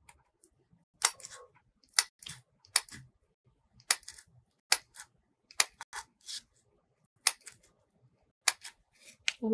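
A hand punch clicks sharply, again and again.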